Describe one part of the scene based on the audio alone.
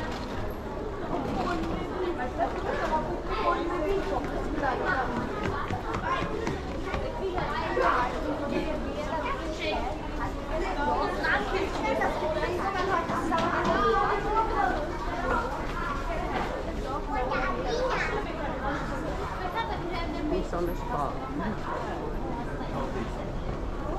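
Footsteps shuffle along a hard floor.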